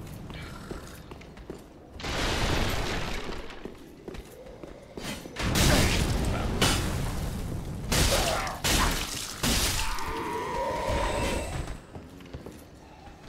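Armoured footsteps run across stone.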